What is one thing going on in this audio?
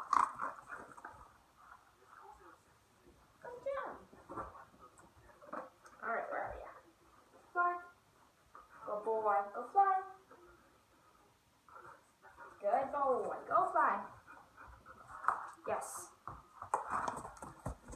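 Dog paws patter on a wooden floor.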